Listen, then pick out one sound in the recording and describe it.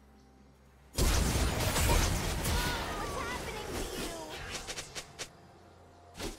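Game spell effects burst and crackle in a fight.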